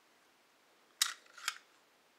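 Metal parts of a pistol click as it is handled.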